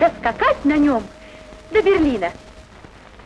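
A young woman speaks cheerfully, close by.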